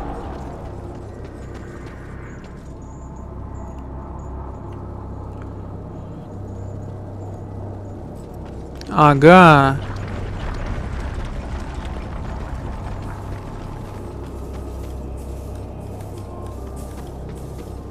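Heavy footsteps run on stone.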